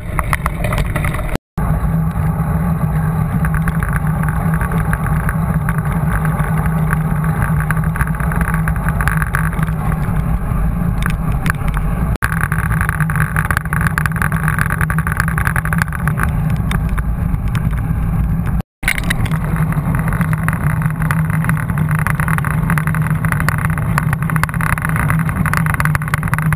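Wind roars loudly over a microphone.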